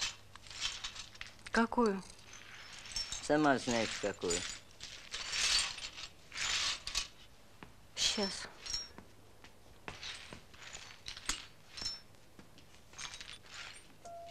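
A twig broom sweeps broken glass across a floor.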